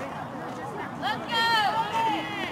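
A young woman shouts loudly nearby.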